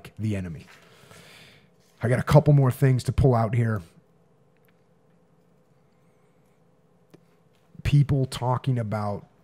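A man speaks calmly and firmly into a close microphone.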